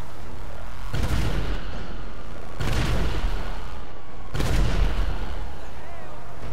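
A tank cannon fires loud booming shots.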